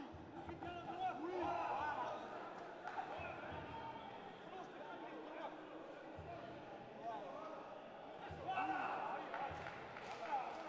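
Spectators shout and cheer in an echoing hall.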